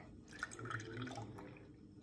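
Liquid pours from a metal pot.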